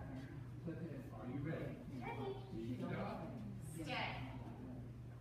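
A woman talks to a dog in a lively, coaxing voice in a large echoing hall.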